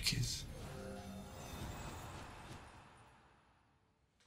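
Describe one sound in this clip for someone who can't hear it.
A young man speaks excitedly close to a microphone.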